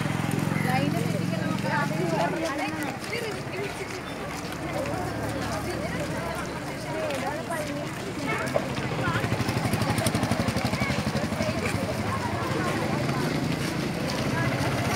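Footsteps shuffle on a dirt road.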